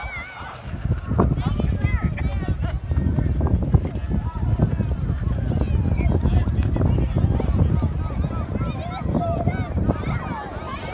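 Plastic wheels of a child's tricycle rumble and scrape across asphalt.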